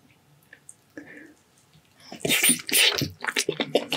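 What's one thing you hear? Sticky meat tears apart in a man's hands.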